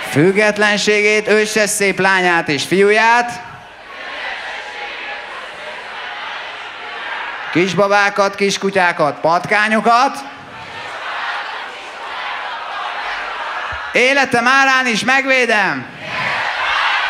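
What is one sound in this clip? A crowd sings along loudly in chorus.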